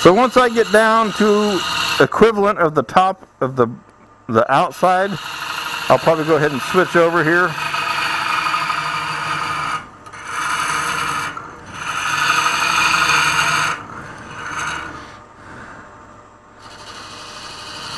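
A gouge scrapes and hisses against spinning wood in bursts.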